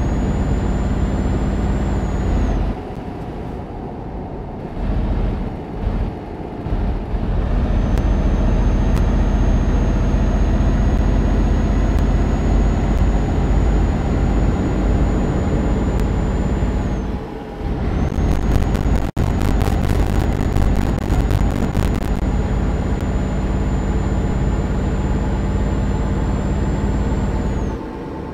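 A truck engine rumbles steadily, rising and dropping as it changes gear.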